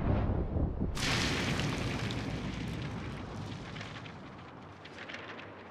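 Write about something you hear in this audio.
Confetti pops and rustles down.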